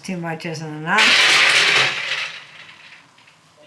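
Champagne pours and fizzes into a glass.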